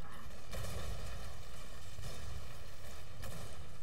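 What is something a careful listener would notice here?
A heavy gun fires with a loud hissing spray.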